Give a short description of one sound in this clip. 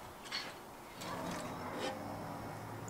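A metal spoon scrapes along a baking tray.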